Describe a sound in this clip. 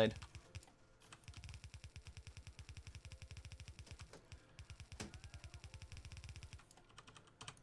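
Quick footsteps patter on the ground.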